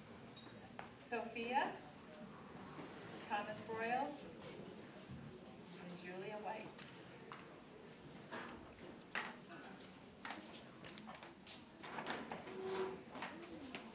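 Children murmur and shuffle in an audience.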